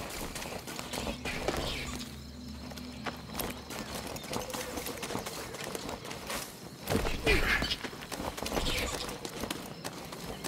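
Footsteps run through tall grass.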